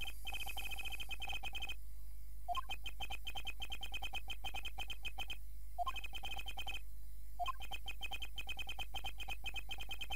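Rapid, high electronic blips chatter in quick bursts with short pauses between them.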